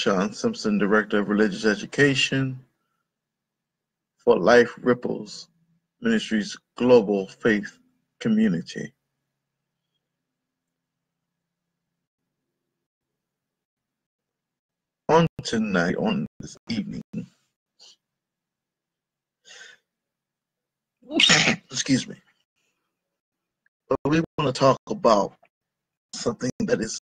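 A man speaks calmly and close up, with pauses, through a computer microphone.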